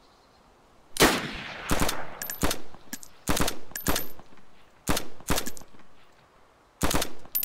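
A rifle fires loud, echoing shots in quick bursts outdoors.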